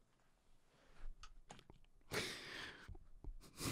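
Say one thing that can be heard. A man chuckles softly close to a microphone.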